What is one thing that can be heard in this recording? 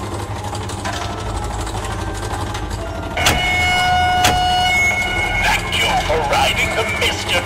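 A ride car rumbles steadily along a track.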